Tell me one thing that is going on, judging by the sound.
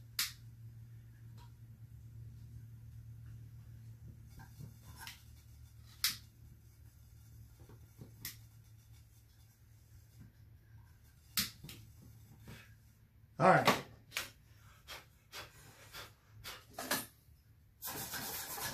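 Small metal parts click and tap.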